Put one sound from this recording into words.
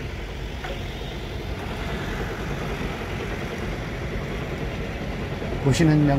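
A drilling machine's engine rumbles steadily nearby.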